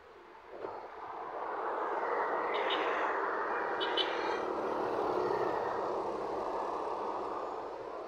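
A motorcycle rides past close by.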